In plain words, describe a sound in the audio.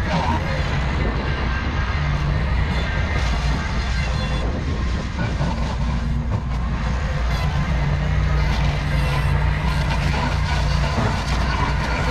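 A mower engine roars steadily close by.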